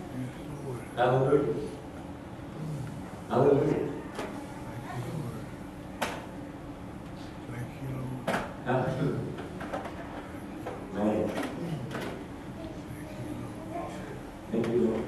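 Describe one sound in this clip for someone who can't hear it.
An elderly man speaks into a microphone, heard through a loudspeaker in a room.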